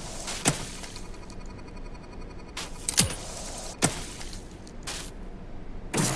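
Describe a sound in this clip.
A spray hisses in short bursts.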